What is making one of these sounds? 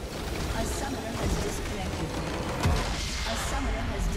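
A crystal structure shatters with a loud crash.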